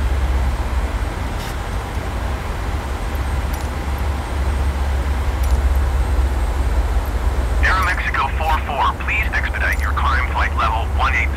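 A jet airliner's engines drone steadily.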